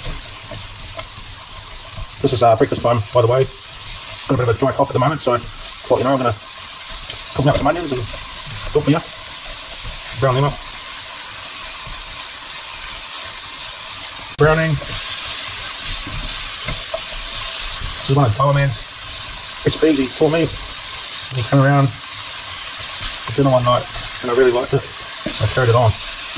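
A spatula stirs and scrapes against a pan.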